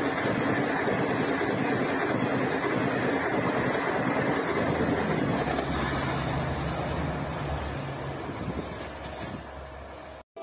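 A passenger train rumbles past close by on the tracks, then fades away.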